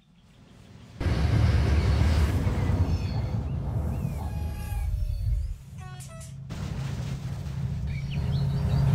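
A freight train rolls past on rails.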